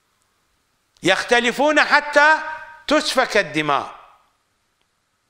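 An elderly man speaks forcefully into a microphone, in short bursts with long pauses.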